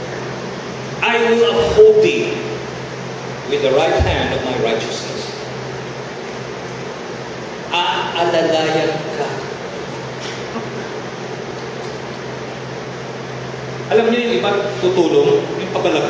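A man speaks through a microphone in short bursts, with pauses between.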